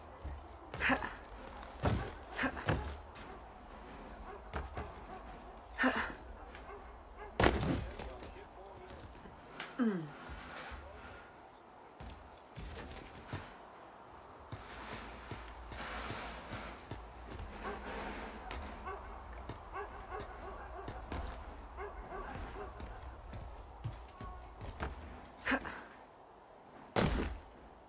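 Footsteps thud and scrape across a wooden roof.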